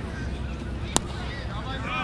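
A cricket bat cracks sharply against a ball outdoors.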